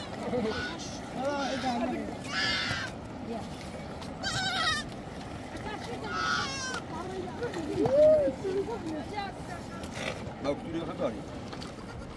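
Young goats bleat loudly.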